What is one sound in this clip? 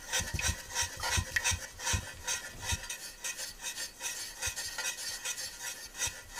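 Small beads rattle as they are poured into a metal baking tray.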